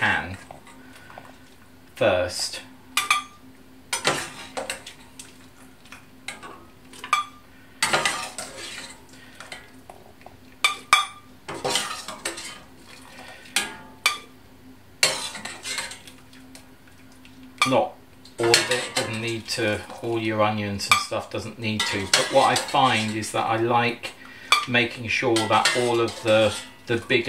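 A metal ladle clinks against a pot and a glass jug.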